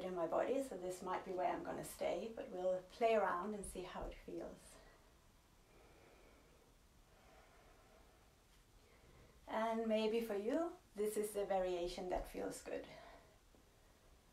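A woman speaks calmly and warmly, close by.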